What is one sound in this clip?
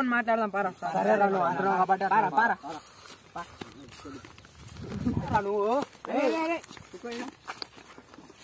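Young men talk loudly and with animation nearby.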